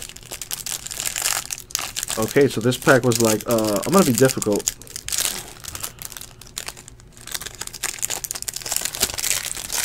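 Plastic wrapping crinkles and rustles as hands tear open a pack of cards.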